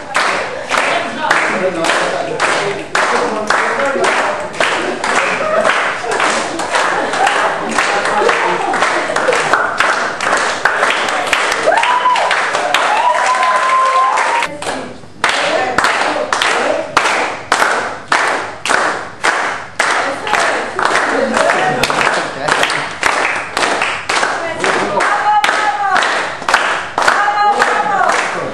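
A group of people clap their hands in a steady, fast rhythm in an echoing hall.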